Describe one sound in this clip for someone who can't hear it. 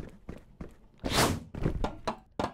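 A body whooshes down a slide.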